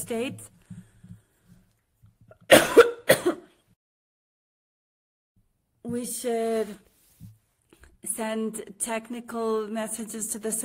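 A woman speaks calmly into a microphone on an online call, with pauses.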